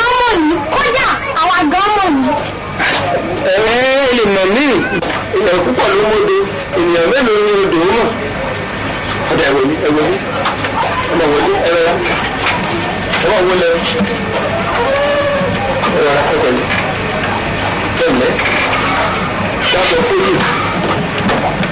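Several women sing together.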